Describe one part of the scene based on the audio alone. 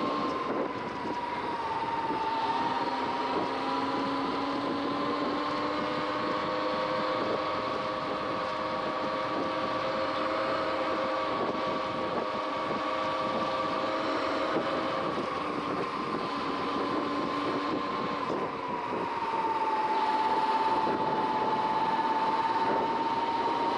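An electric motor whines steadily, its pitch shifting slightly.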